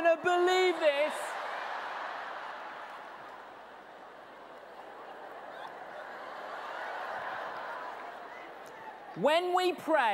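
A large audience laughs.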